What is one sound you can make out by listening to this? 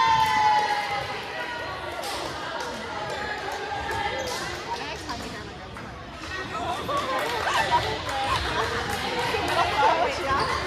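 A volleyball thuds off hands and bounces on the floor.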